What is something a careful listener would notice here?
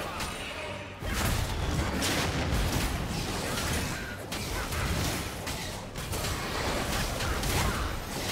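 Magic spells crackle and boom in a fierce battle.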